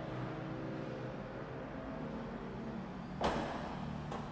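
A power tailgate hums as it swings shut and closes with a thud.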